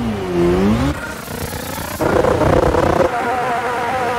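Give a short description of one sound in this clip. A race car engine revs loudly.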